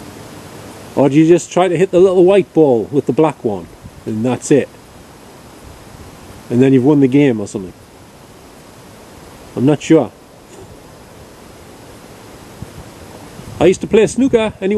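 A middle-aged man speaks in short bursts, close by and calmly.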